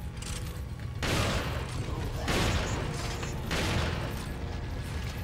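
Loud shotgun blasts boom, each followed by a ringing echo.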